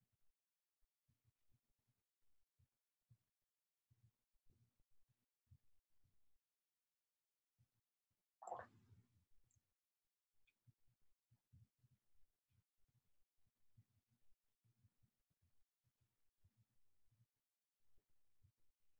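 A woman speaks calmly and quietly close to a microphone.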